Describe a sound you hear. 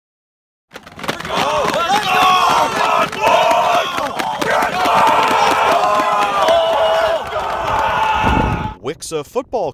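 A group of teenage boys shout and chant together loudly, close by.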